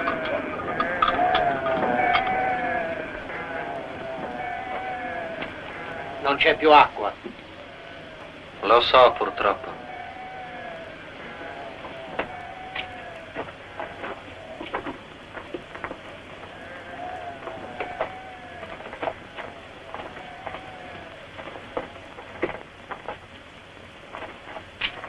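Metal armour and shields clank as a group of soldiers shuffles past.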